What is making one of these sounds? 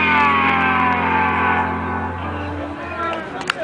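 An electric guitar chord rings out and slowly fades.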